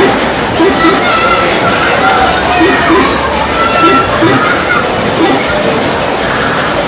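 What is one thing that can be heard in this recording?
A fairground ride rumbles and whirs as it spins.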